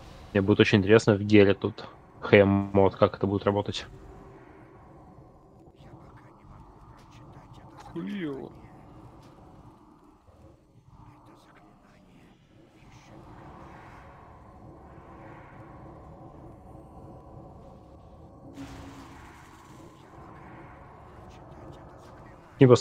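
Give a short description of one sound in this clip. Magic spells crackle and whoosh in a fast battle game.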